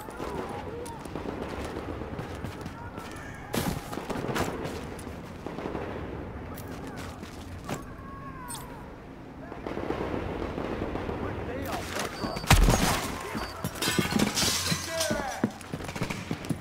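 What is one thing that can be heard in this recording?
Footsteps crunch quickly over snow and gravel.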